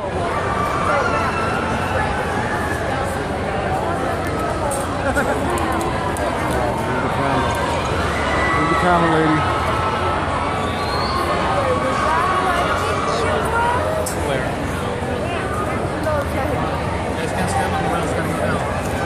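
A crowd of men and women chatters loudly all around.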